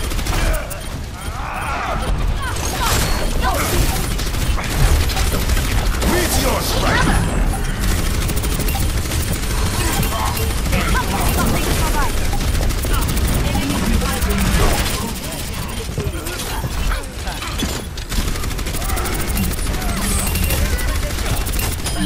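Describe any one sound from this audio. A game weapon fires rapid bursts with loud bangs.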